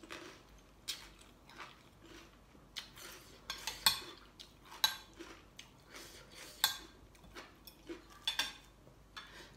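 A fork and spoon clink and scrape against a plate.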